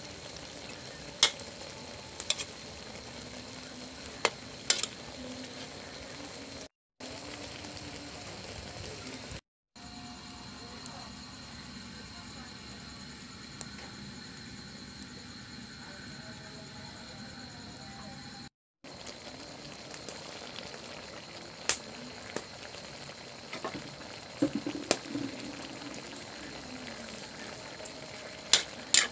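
A stew bubbles and simmers in a pan.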